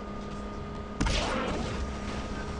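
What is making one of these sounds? A car thumps hard onto a ramp.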